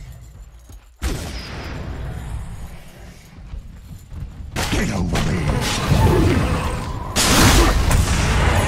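Video game combat effects clash and burst.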